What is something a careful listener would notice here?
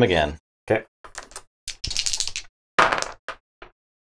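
Dice clatter as they are rolled across a board.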